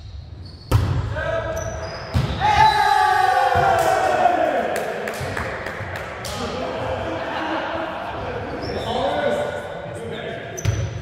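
Men shout and call out loudly across the court.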